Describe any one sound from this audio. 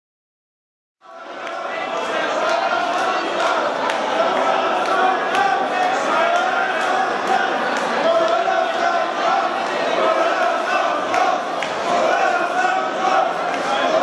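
Loud electronic dance music plays over big speakers in a large hall.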